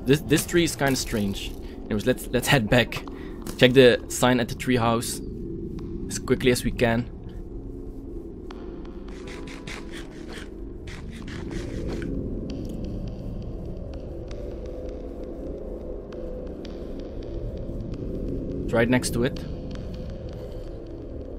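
Footsteps crunch over grass and dirt.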